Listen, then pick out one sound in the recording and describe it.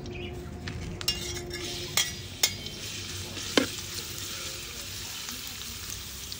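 A metal spatula scrapes and clinks against a wok.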